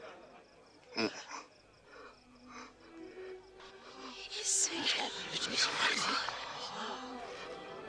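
A young man groans and gasps while lying on the ground.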